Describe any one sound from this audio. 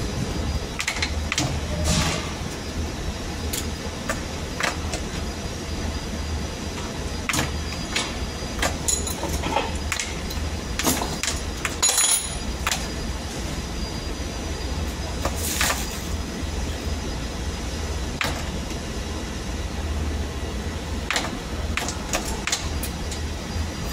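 Metal parts click and clatter now and then as they are handled.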